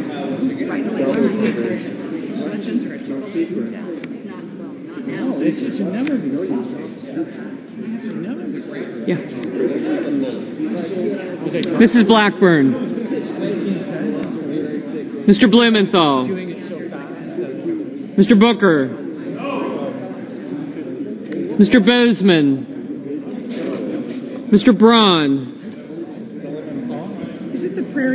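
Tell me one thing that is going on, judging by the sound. Many men and women murmur and chat in a large echoing hall.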